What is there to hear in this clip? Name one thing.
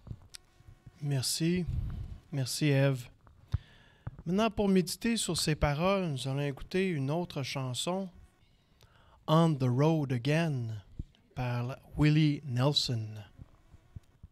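An elderly man speaks calmly into a microphone in a room with some echo.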